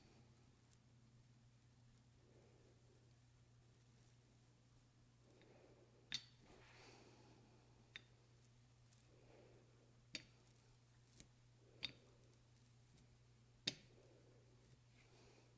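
A paint roller rolls softly and stickily over wet paint.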